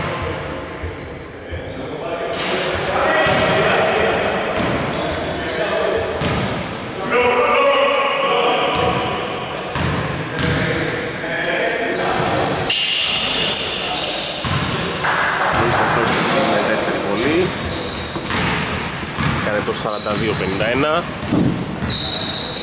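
Players' voices echo through a large hall.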